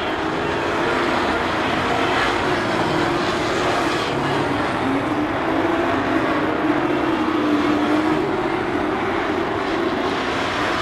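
Loud racing car engines roar and drone steadily nearby, outdoors.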